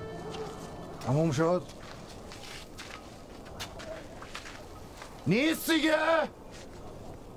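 A man shouts loudly and angrily nearby.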